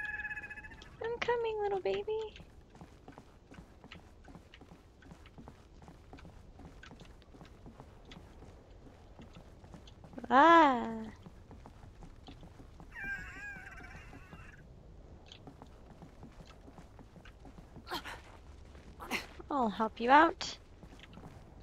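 A young woman speaks briefly into a close microphone, in short bursts.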